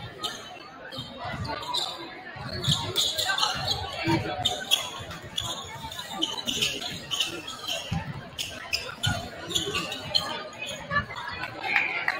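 Basketballs bounce on a hardwood floor, echoing in a large hall.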